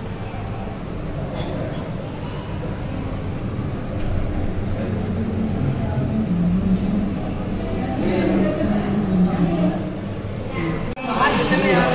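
Motorised figures whir softly as they move.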